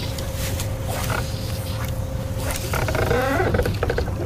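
A fishing reel whirs as line is reeled in.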